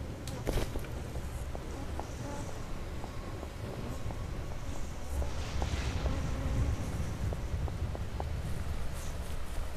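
Footsteps pad softly over stone and sand.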